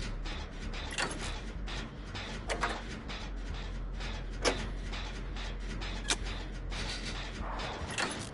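Machinery rattles and clanks steadily.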